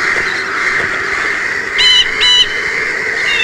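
Birds chirp overhead.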